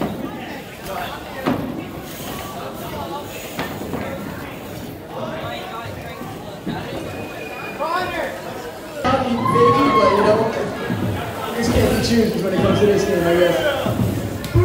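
Bicycle tyres roll and thump over wooden ramps.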